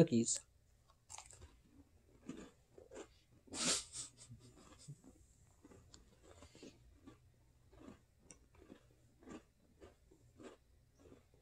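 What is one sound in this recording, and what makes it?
A man crunches a cookie while chewing.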